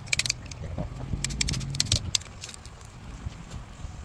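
Wood chips crackle as a gouge cuts into a stump.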